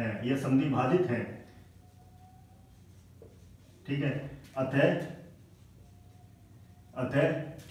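A young man explains calmly, close by.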